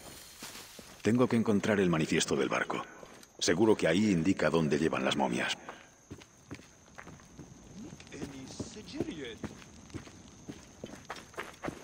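Footsteps run over sandy ground.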